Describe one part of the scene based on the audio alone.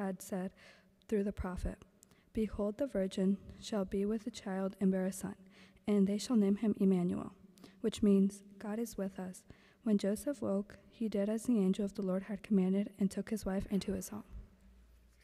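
A youth choir sings together in a large echoing hall.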